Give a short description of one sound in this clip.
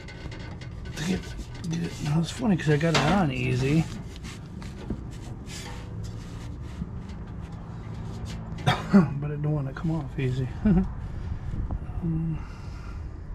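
A man talks close by, calmly.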